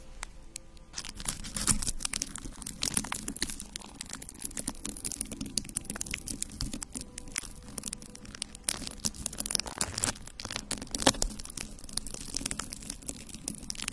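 Fingernails tap and scratch on objects right against a microphone, with crisp close crackles.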